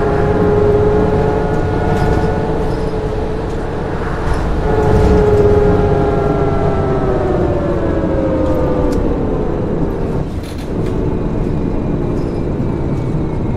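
A bus engine hums steadily and drops in pitch as the bus slows down.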